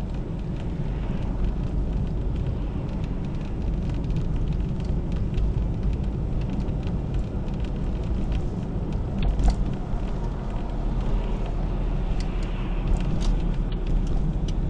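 Tyres roll on a road with a steady low rumble from inside a moving car.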